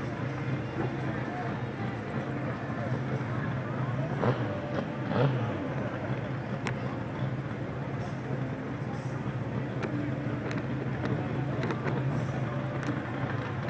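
A car drives past on a road at a distance.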